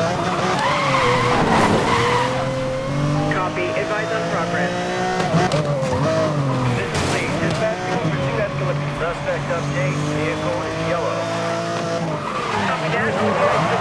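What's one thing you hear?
Tyres screech while drifting around a corner.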